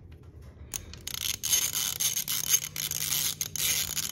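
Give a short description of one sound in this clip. A ratchet wrench clicks rapidly.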